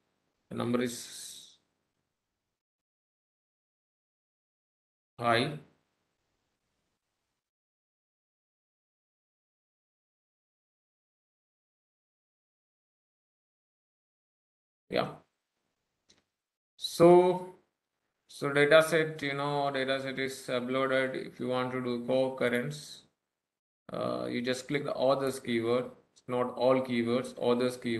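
A man speaks calmly into a microphone, in short bursts with long pauses at first.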